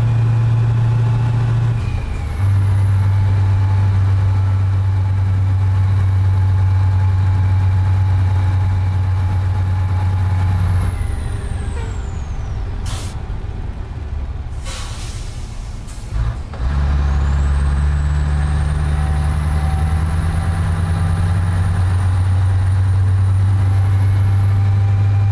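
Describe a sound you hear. A truck engine hums steadily, dropping as the driver shifts gears.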